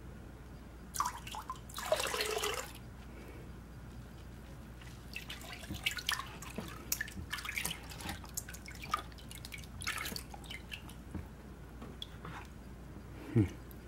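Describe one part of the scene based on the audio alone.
Water splashes and trickles as plastic pans are moved through a tub of water.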